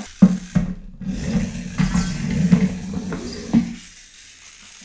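A small toy robot train whirs as it rolls along a track.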